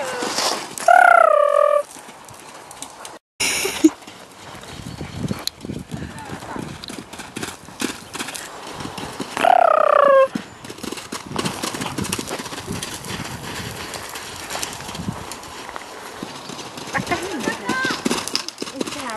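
A pony's hooves thud on soft sand as it canters.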